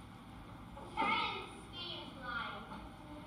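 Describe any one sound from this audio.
A young child speaks nearby.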